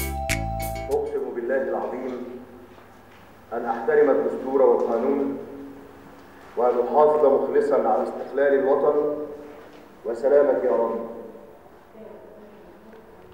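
A man reads out a statement through a television loudspeaker.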